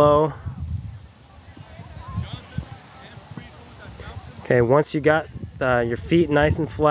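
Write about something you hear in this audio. A young man talks calmly, close by, outdoors.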